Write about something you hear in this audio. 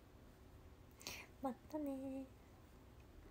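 A young woman speaks briefly and playfully, close to a microphone.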